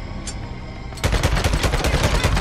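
Rapid gunshots fire in quick succession.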